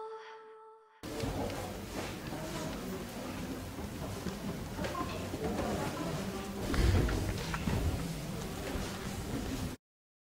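Chalk scratches and taps on a board.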